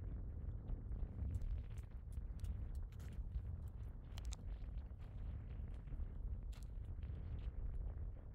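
Wind blows across open ground with a low rumble.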